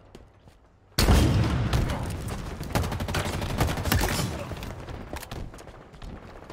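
Gunfire and explosions boom loudly and rapidly.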